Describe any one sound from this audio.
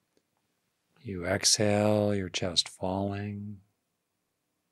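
An older man speaks calmly and closely into a microphone.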